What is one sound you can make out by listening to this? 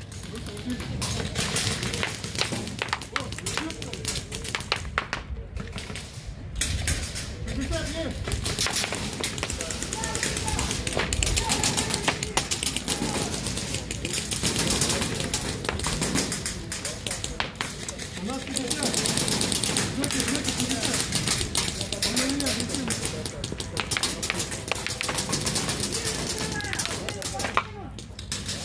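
Paintball markers fire in rapid bursts of sharp pops outdoors.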